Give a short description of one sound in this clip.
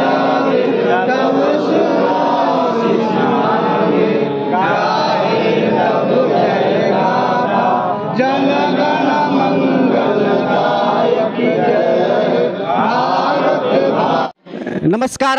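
A man speaks loudly outdoors.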